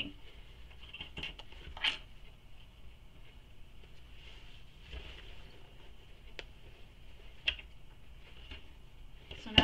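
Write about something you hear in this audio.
Fabric rustles as hands handle it.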